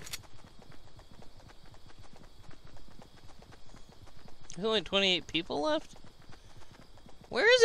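Quick footsteps patter steadily on grass.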